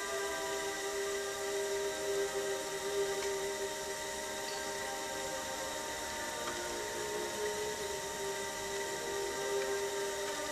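Wet clay rubs softly under fingers on a spinning wheel.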